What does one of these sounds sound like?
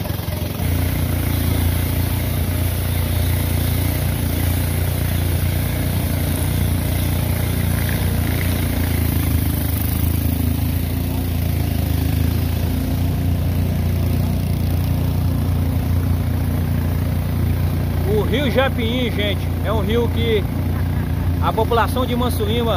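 An outboard boat engine drones steadily and close by.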